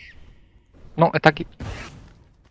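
A man speaks briefly into a headset microphone.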